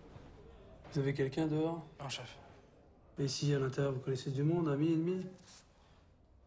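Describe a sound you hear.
A man asks questions in a low, calm voice.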